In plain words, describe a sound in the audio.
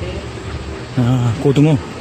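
A woman speaks into a phone nearby.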